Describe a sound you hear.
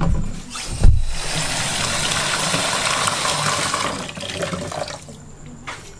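Tap water runs into a plastic bowl.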